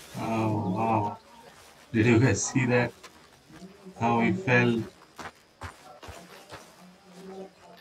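Footsteps brush through grass.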